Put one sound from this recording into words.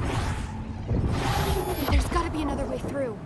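A crackling burst of magical energy whooshes.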